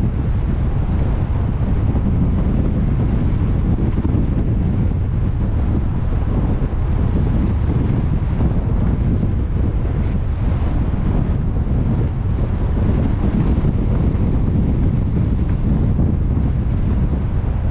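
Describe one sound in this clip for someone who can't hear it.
Strong wind roars steadily across the open sea.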